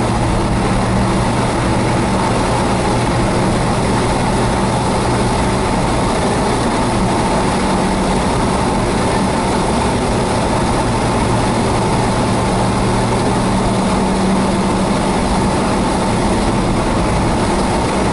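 A car drives along a highway, heard from inside, with road and engine noise.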